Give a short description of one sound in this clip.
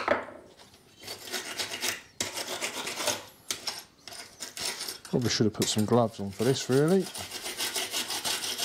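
A wire brush scrubs rapidly against metal.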